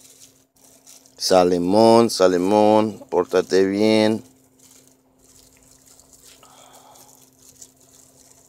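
A plastic bag crinkles and rustles in a hand.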